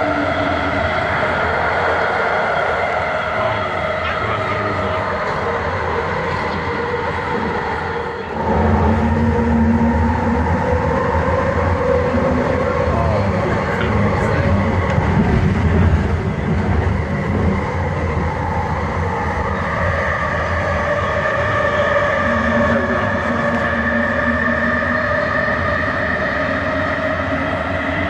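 A train hums and rumbles steadily along its track.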